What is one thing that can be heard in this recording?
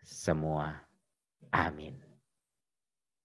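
A man speaks warmly and close to a microphone.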